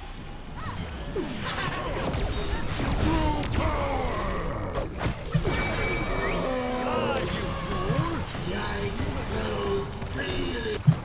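Spell and combat sound effects crackle and whoosh from a video game.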